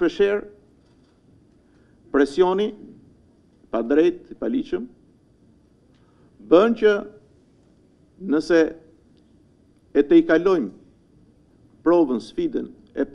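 A middle-aged man speaks calmly into a microphone in short phrases with pauses.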